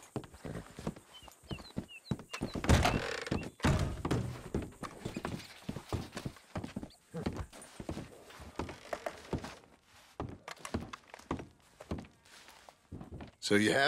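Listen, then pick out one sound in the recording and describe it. Boots thud on wooden floorboards.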